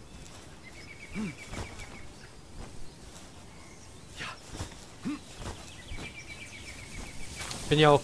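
Footsteps run across rock.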